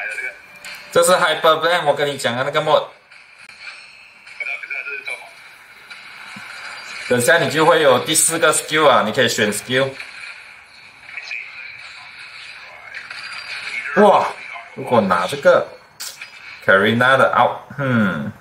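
A young man talks animatedly, close to a microphone.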